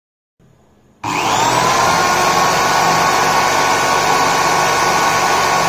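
An electric drill whirs at high speed, spinning a small motor with a steady whine.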